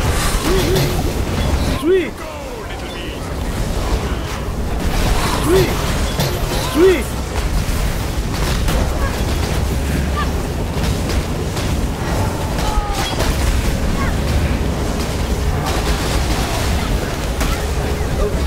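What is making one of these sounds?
Fiery spell blasts roar and crackle constantly.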